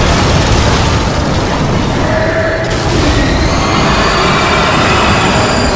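Magic blasts burst and crackle loudly.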